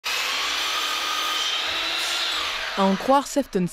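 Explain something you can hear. A power miter saw whines as its blade cuts through wood trim.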